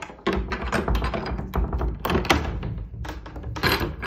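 A metal door latch clicks and rattles.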